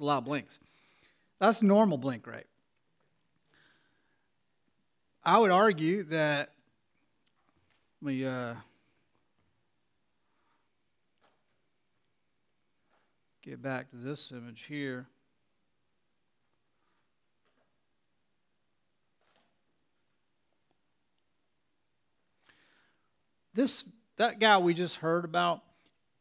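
A man speaks calmly through a microphone, in short phrases with long pauses.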